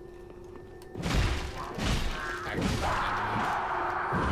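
Metal weapons clash and swing in a fight.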